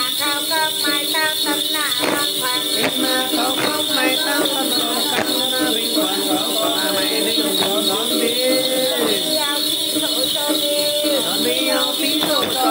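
A man sings in a wavering, chanting voice close by.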